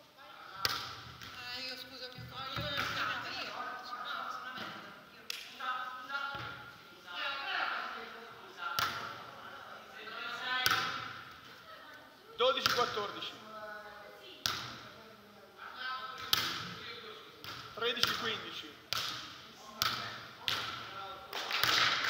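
A ball is struck by hands with sharp slaps, echoing in a large hall.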